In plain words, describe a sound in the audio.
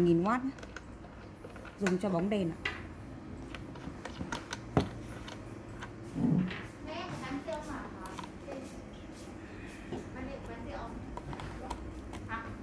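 Hands handle a plastic case and clips, making light clicks and knocks.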